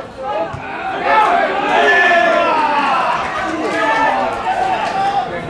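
Young men cheer loudly.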